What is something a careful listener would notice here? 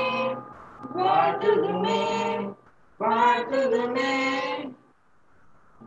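A middle-aged man speaks with animation into a microphone, heard over an online call.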